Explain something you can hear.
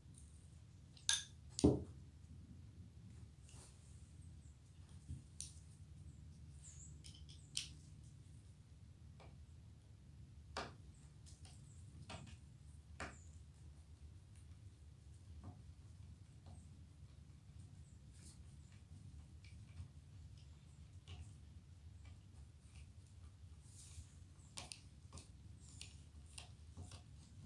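Small metal parts click and clink.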